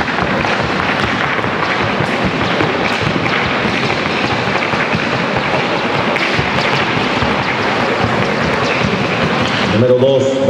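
A large crowd murmurs and chatters in the stands.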